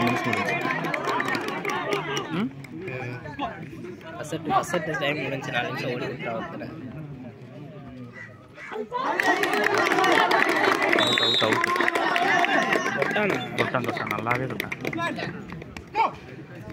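A crowd of young people shouts and cheers outdoors.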